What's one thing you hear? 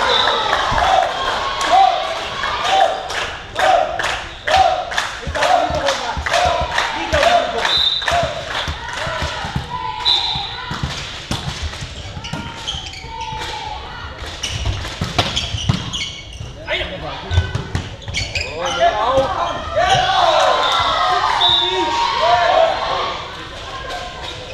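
A volleyball is struck and bounces in a large echoing hall.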